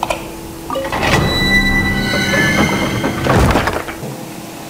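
A heavy stone door rumbles open with a chiming swell.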